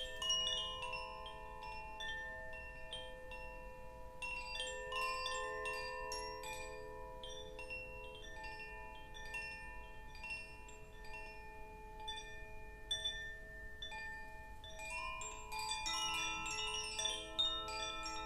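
Crystal singing bowls ring with long, steady tones.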